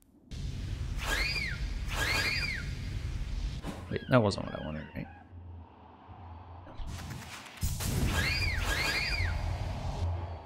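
A small character's quick dashes whoosh with chiming tones.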